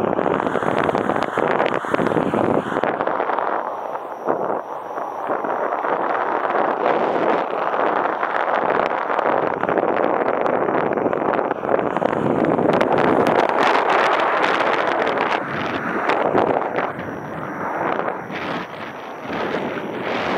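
Wind rushes loudly and gustily past in open air.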